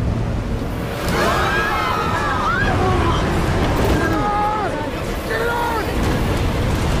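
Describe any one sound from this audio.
Men and women scream in panic nearby.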